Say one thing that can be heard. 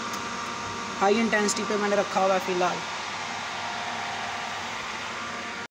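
A cabinet fan hums steadily.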